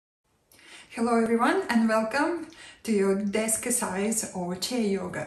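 A woman speaks warmly and clearly into a microphone.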